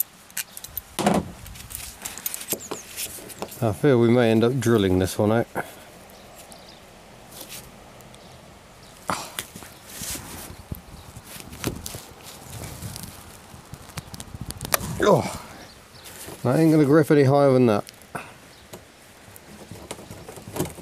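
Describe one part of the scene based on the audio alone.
Metal clicks and scrapes as pliers work a latch.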